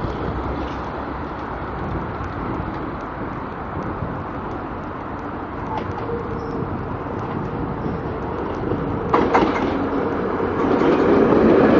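A diesel-hauled passenger train approaches.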